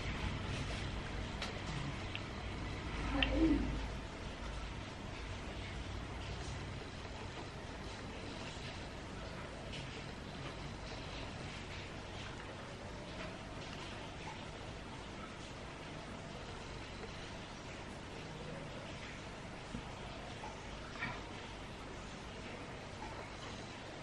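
A young woman speaks softly and calmly, close to a microphone.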